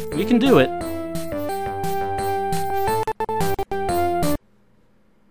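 Cheerful electronic game music plays with bright beeping notes.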